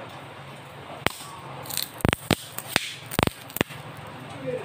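A phone case clicks and snaps as it is pulled off a phone.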